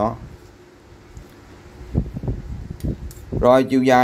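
A metal ruler clinks against pliers.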